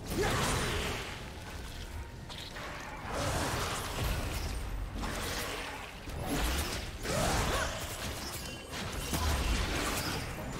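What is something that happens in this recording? Magic spell effects whoosh and crackle in bursts.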